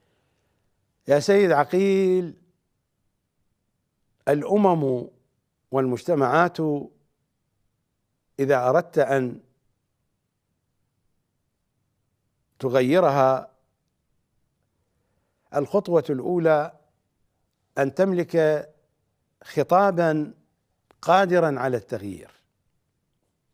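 A middle-aged man speaks calmly and deliberately into a close microphone, in short phrases with pauses.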